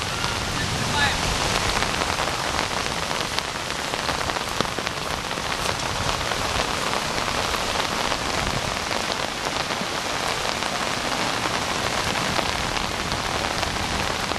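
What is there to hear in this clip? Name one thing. Water rushes steadily nearby, outdoors.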